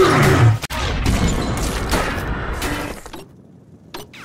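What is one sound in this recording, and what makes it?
An electronic device beeps and whirs during a hacking attempt.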